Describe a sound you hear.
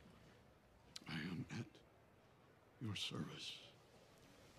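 An older man speaks firmly and clearly nearby.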